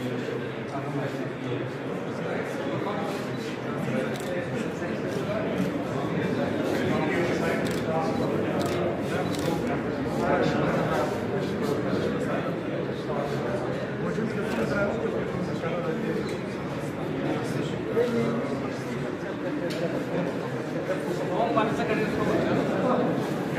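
A man talks calmly, explaining, close by.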